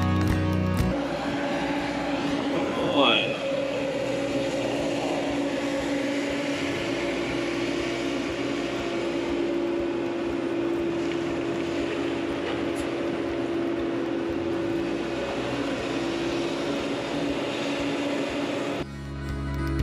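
A diesel engine hums steadily close by.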